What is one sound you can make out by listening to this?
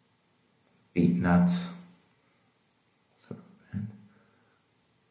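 A man speaks briefly and calmly close by.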